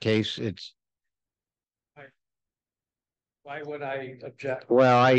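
A man speaks calmly through a microphone, heard over an online call.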